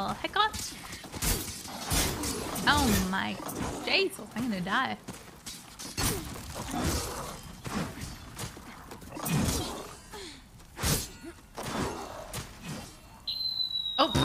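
Swords clash and strike in quick blows.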